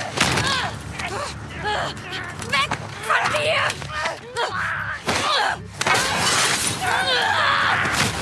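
Glass cracks and shatters.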